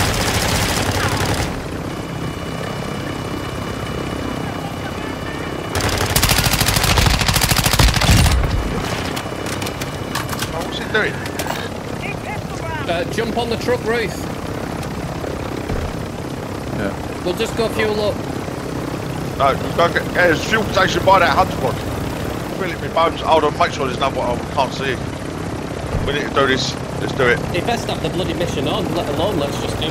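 A helicopter's rotor drones steadily overhead.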